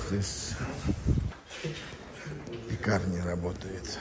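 Footsteps of a man walking past echo in a tiled underground passage.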